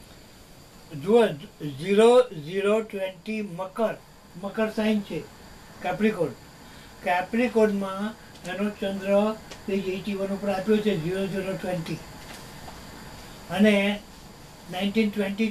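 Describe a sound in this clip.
An elderly man speaks close by, in a conversational tone.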